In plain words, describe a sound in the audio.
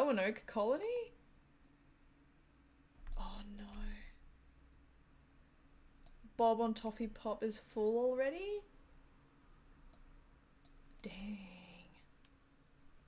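A young woman talks calmly into a close microphone, in short bursts.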